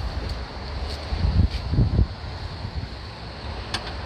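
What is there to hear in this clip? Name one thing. A car tailgate latches shut with a dull thud.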